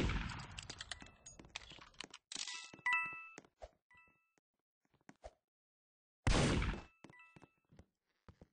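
Bright coin chimes ring out in short bursts.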